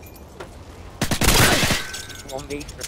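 A rifle fires a loud, short burst of shots.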